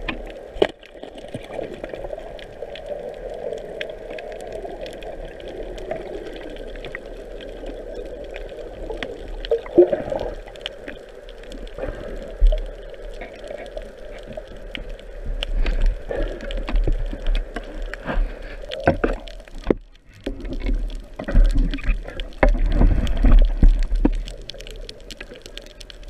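Small clicks and crackles sound underwater.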